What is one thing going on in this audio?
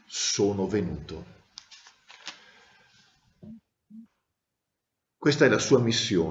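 A middle-aged man speaks calmly and close to the microphone, with pauses.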